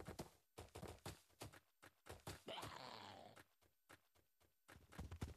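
Heavy footsteps thud steadily on hard ground.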